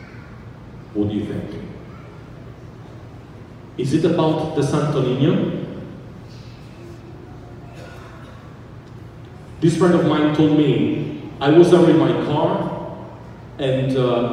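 A man sings slowly through a microphone, echoing in a large hall.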